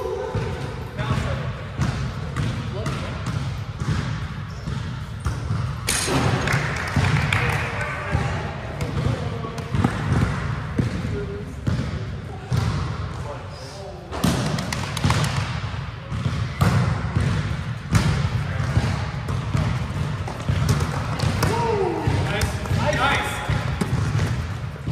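A volleyball thumps off players' arms and hands in a large echoing gym.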